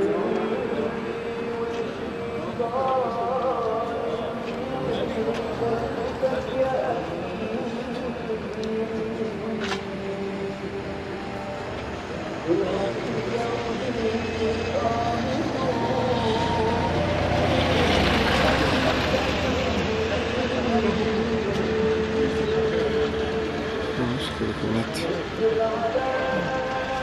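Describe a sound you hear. A man speaks steadily at a distance.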